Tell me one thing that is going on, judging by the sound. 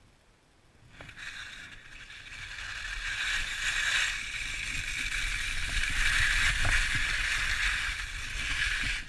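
Skis scrape and hiss over snow at speed.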